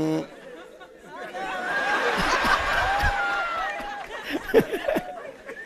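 A crowd laughs.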